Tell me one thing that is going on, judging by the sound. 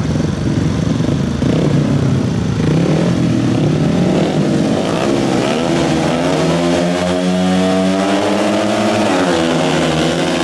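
Several motorcycle engines rev loudly, close by.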